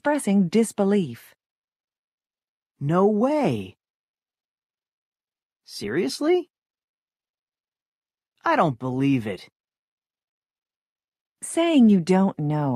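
A man speaks in short phrases over an online call, with pauses between them.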